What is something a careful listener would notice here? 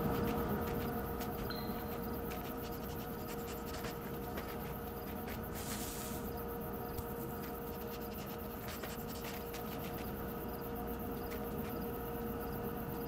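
Footsteps crunch softly in snow.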